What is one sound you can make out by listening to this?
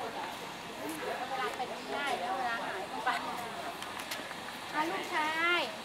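Middle-aged women chat casually nearby outdoors.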